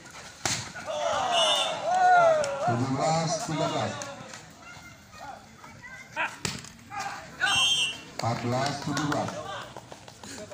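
A crowd of onlookers cheers.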